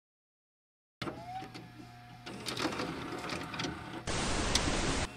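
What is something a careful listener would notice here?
A videotape slides into a player with a mechanical clunk and whir.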